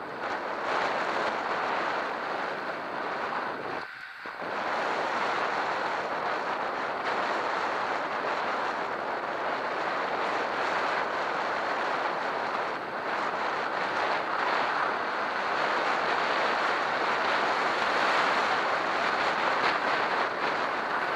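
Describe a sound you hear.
A vehicle's tyres roar steadily on a wet road.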